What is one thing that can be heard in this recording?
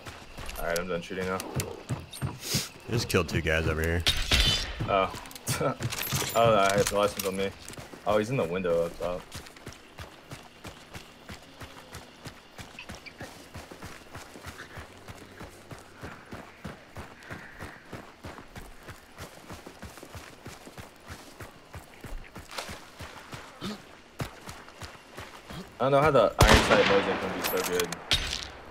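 Footsteps crunch steadily on dirt and gravel.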